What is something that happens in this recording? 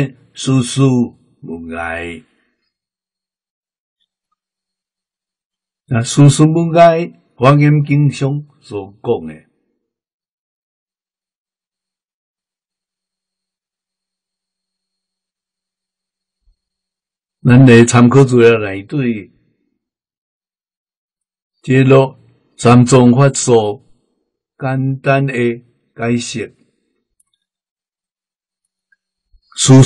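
An elderly man speaks calmly and slowly, close by, with long pauses.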